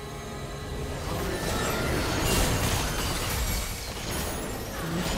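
Magic spell blasts whoosh and crackle loudly.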